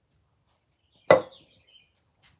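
A metal cup clunks down on a hard surface.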